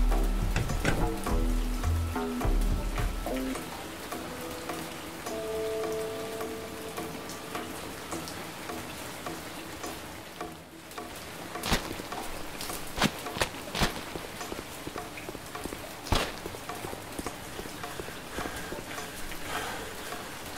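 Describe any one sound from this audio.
Footsteps crunch softly on gravel as a person creeps along.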